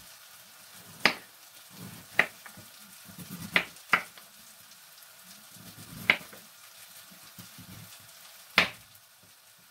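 A knife chops on a wooden board with sharp knocks.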